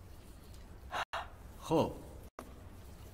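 An elderly man cries out nearby.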